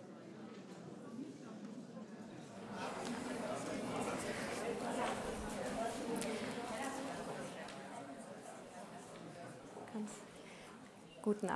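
An audience applauds in a large hall and the applause fades.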